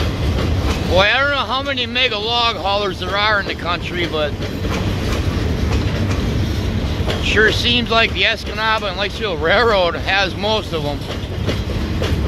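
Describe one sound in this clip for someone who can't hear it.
Train wheels squeal and screech in wavering bursts.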